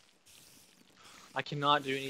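A spider hisses.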